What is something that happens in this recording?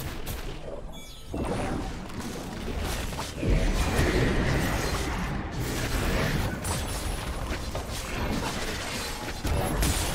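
Magic spells crackle and blast in quick bursts.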